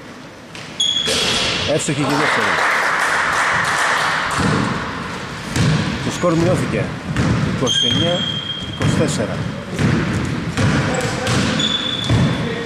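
A basketball bounces on the floor.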